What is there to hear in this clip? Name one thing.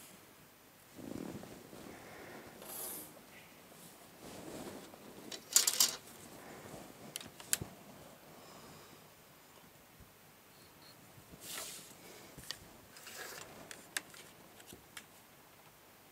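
Plastic rulers slide and tap against paper.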